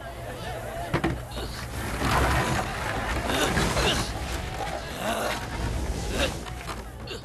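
Wooden crates crash and clatter to the ground.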